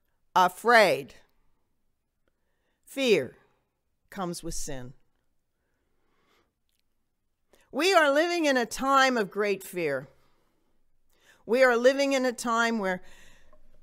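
A woman speaks calmly and slowly into a microphone, with pauses.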